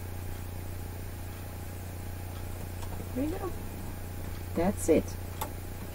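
Plastic parts click and knock as a sewing machine is handled.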